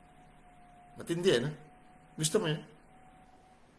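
A middle-aged man laughs briefly, heard close through a microphone.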